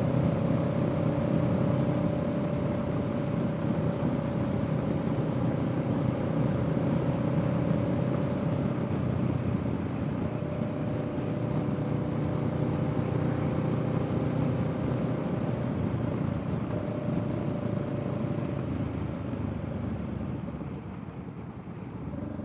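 Wind rushes past a rider.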